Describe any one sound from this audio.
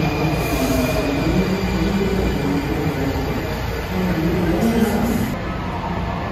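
A subway train rumbles out of an echoing station.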